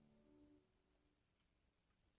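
A piano plays a soft chord that rings out and fades in a large echoing room.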